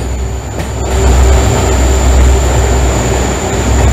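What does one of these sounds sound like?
A train's rumble grows louder and echoes as it enters a tunnel.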